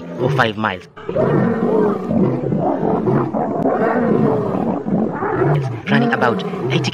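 Lions snarl and roar as they fight.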